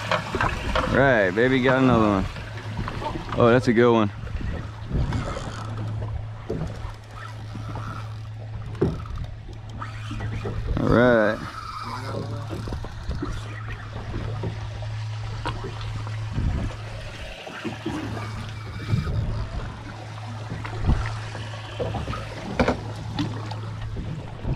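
A boat engine idles with a steady low hum.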